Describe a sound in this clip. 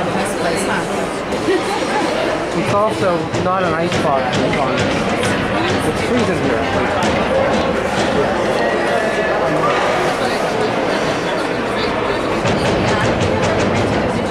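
Hockey sticks clack against the ice and puck.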